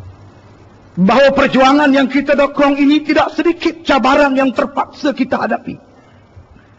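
A man speaks in long, drawn-out phrases through a microphone.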